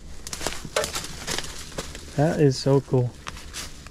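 A hand pats a metal grille.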